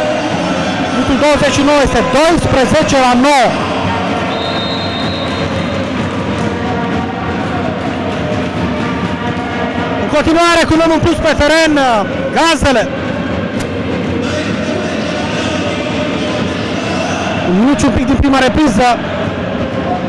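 Spectators chant loudly in short bursts.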